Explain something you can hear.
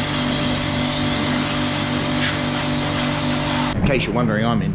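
A pressure washer sprays water with a loud steady hiss and hum.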